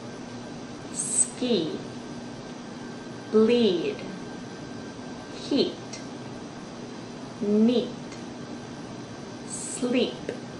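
A young woman speaks close by in short bursts.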